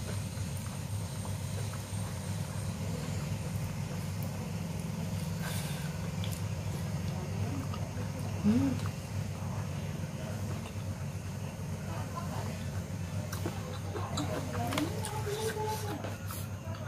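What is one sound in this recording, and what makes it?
A woman chews food noisily close to a microphone.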